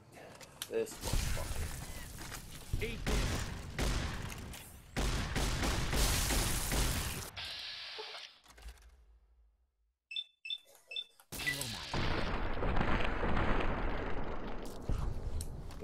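Shotgun blasts boom in rapid bursts.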